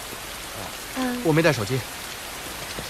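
A young woman answers quietly.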